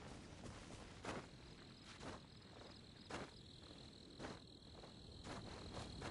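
A climber's hands grip and scrape against rock in a steady rhythm.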